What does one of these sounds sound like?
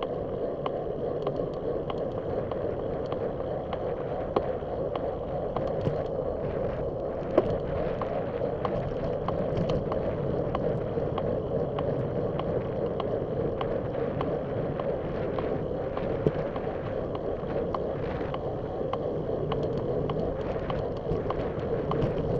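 Tyres rumble on the road surface.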